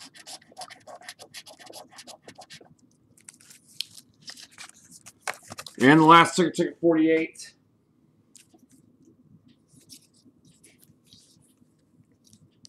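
A scraper rasps across a card in quick strokes.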